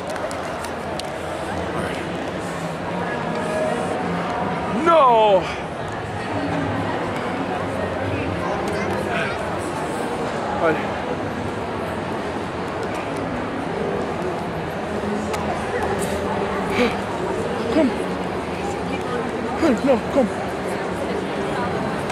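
A crowd chatters steadily in a large echoing hall.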